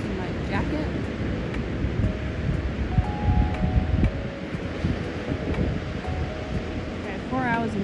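Waves wash onto the shore in a steady rush.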